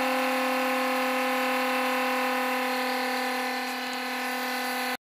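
A small motor spins with a steady high-pitched whine.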